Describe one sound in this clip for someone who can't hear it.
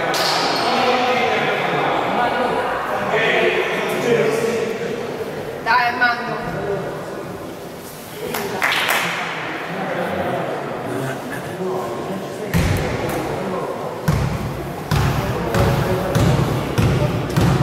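Young players call out to each other across an echoing gym.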